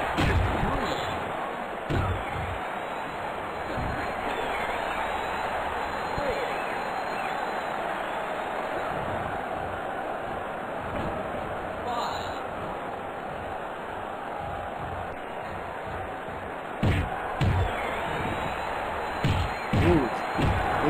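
Heavy thuds of bodies slamming land now and then.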